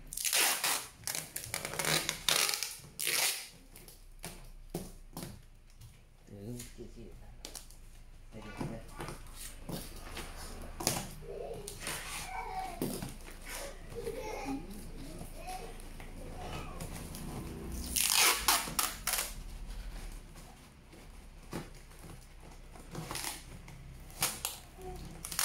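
Cardboard boxes rustle and thump as they are handled.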